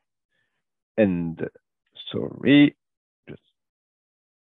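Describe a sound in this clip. A man speaks calmly through a microphone on an online call, with long pauses.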